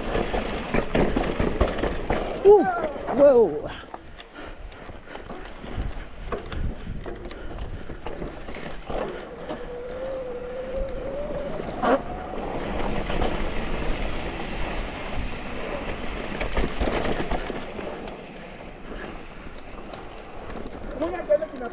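A mountain bike's frame and chain clatter over bumps.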